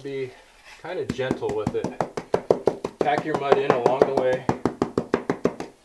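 A trowel scrapes and smooths wet mortar in quick strokes.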